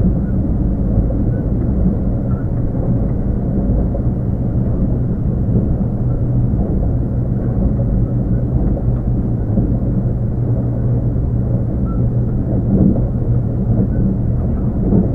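An electric train hums steadily with a low drone.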